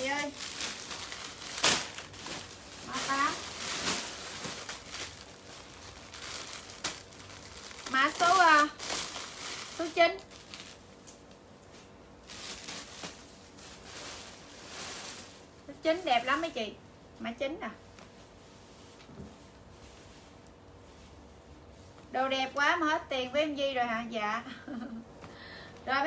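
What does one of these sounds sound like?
Fabric rustles as clothes are handled.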